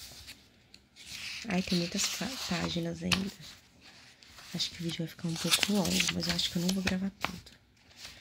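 A paper page rustles and flips as it is turned.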